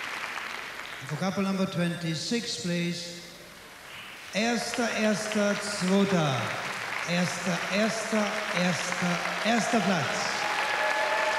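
A middle-aged man speaks calmly through a microphone over a loudspeaker.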